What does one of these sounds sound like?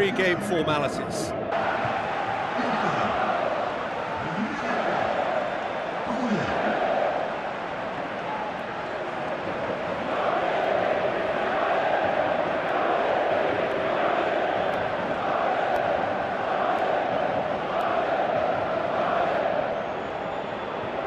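A large stadium crowd chants and roars.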